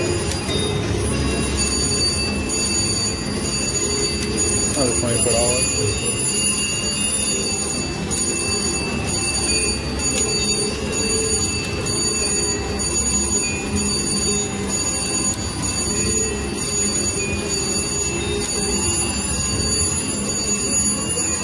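A slot machine plays steady electronic tones and jingles.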